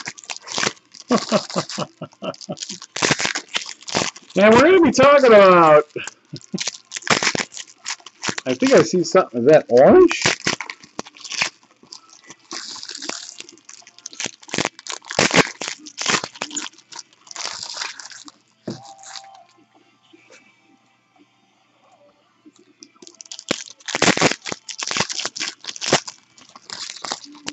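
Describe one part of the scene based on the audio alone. Foil wrappers crinkle and rustle as hands tear them open.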